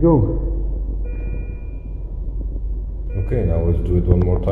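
A patient monitor beeps.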